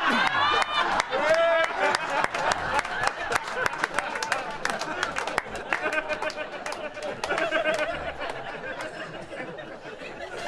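People clap and knock on tables.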